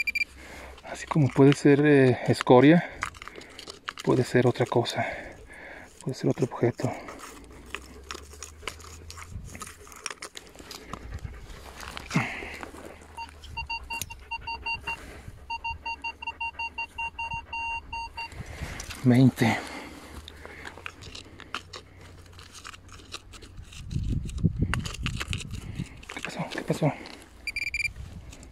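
A hand trowel scrapes and digs into stony soil.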